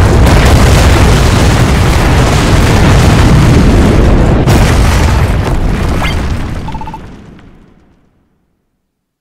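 A deep, loud rumbling roar fills the air, then fades away.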